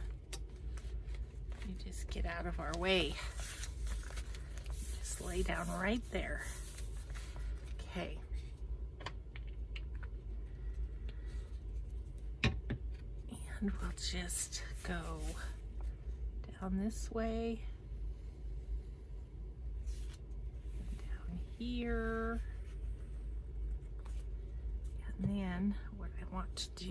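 Paper rustles and crinkles as pages are handled.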